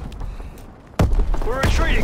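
A rocket launcher fires with a heavy blast.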